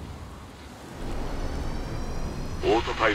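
A jet thruster roars close by.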